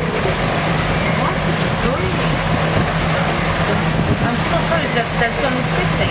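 Choppy sea water splashes and churns.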